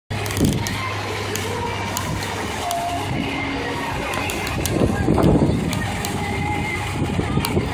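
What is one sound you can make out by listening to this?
A fountain splashes and gushes steadily nearby.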